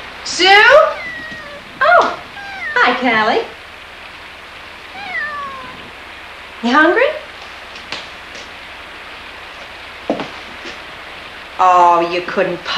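A young woman cries out in a high, wavering voice nearby.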